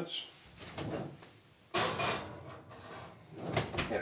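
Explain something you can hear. An oven door creaks open and shuts.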